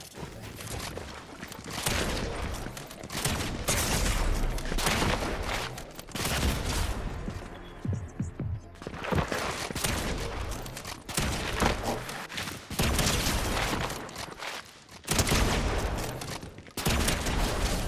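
Video game gunshots fire in rapid bursts.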